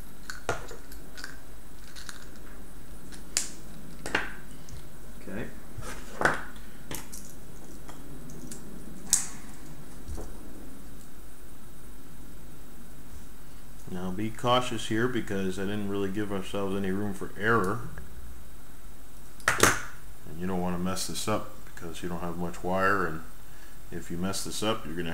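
Small clicks and taps come from wires being fitted into a plastic connector.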